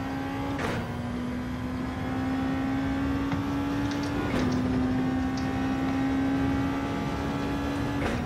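A racing car engine drops in pitch with each quick gear change.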